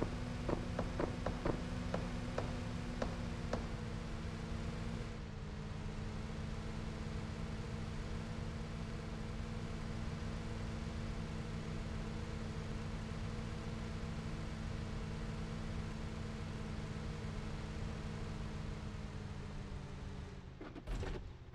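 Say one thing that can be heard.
A vehicle engine drones steadily while driving.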